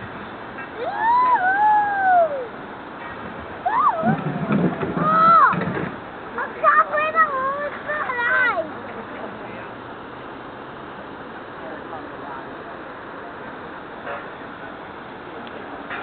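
A shallow river gurgles over rocks.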